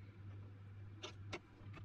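A steel vise handle clanks.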